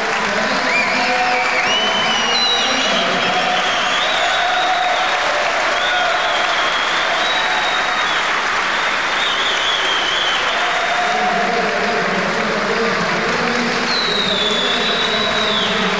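A large crowd cheers and applauds loudly.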